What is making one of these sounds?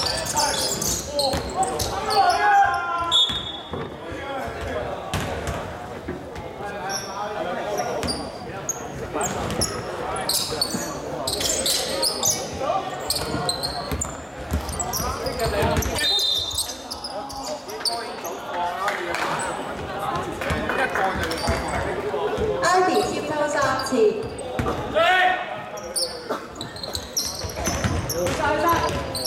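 Sneakers squeak on a hardwood floor in an echoing hall.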